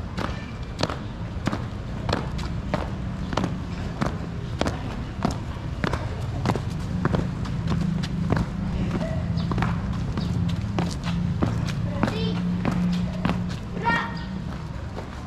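Feet stamp in a steady marching rhythm on paving.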